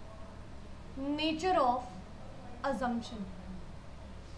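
A woman speaks briefly with rising, animated intonation, close by.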